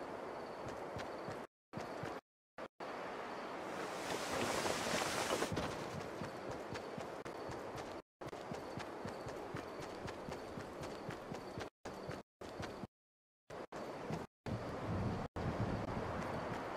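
Footsteps patter quickly on grass.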